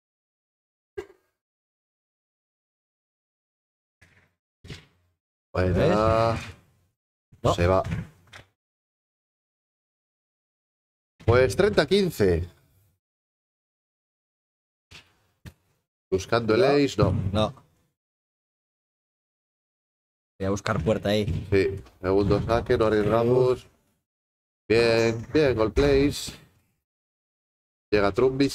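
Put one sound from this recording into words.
A padel ball is struck with a paddle.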